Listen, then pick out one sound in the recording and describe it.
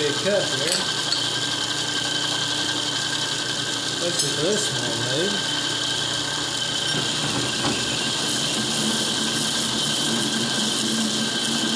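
A cutting tool scrapes against spinning metal.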